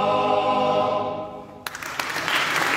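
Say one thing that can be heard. A men's choir sings a held chord in a large echoing hall.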